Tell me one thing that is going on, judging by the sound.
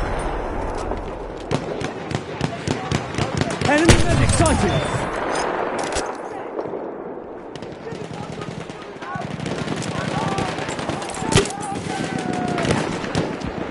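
Rifle shots crack repeatedly nearby and in the distance.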